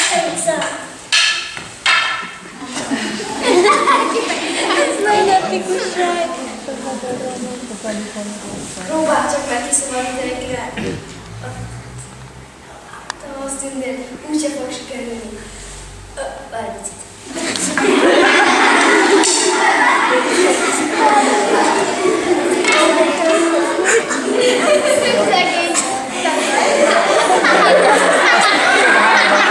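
Children speak loudly and with animation.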